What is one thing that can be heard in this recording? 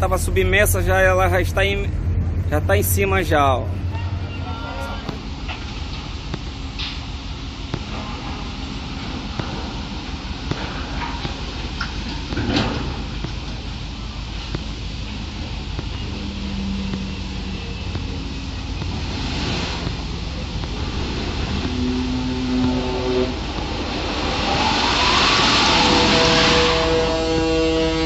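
Waves slosh and churn around a sinking ship.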